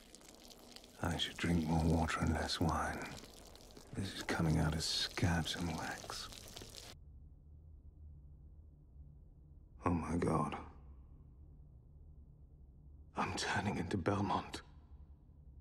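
A man speaks slowly in a low, calm voice.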